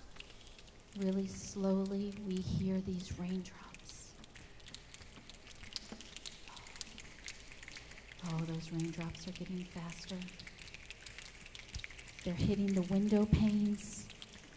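A group of young children sing together into microphones in short phrases, with pauses between them.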